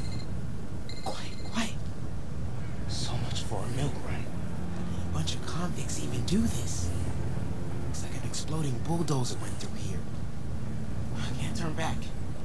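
A young man speaks with concern.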